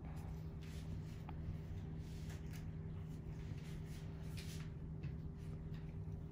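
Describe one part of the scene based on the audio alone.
Gloved fingers rustle softly against gauze.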